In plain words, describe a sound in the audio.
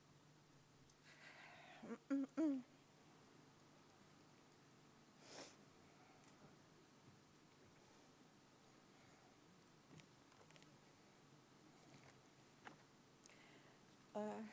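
An elderly woman speaks briefly through a microphone.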